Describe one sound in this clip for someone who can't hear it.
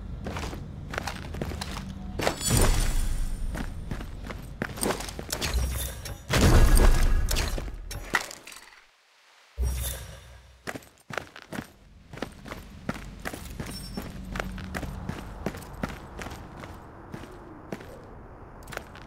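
Footsteps thud quickly across a hard floor.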